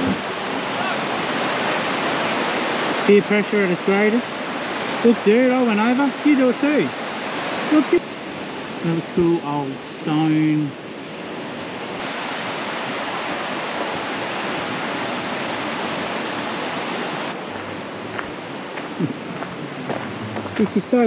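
A river rushes steadily over rocks outdoors.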